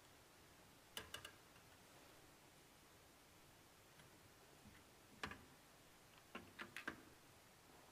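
Metal trays clink as they are handled.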